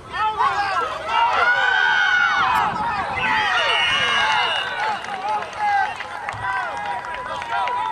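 A crowd of spectators cheers and shouts excitedly nearby.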